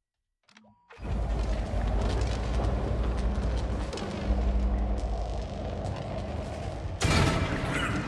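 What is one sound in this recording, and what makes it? Steam hisses loudly from vents.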